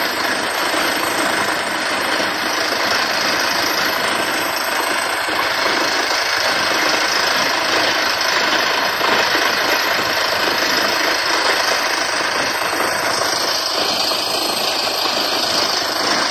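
A drilling rig's compressor blasts air out of a borehole with a loud, steady roar.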